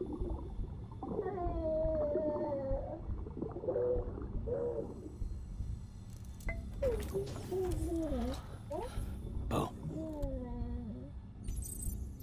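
A baby coos and gurgles softly close by.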